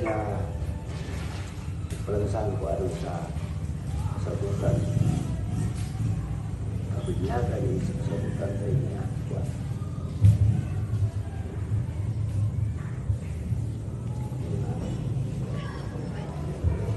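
Papers rustle.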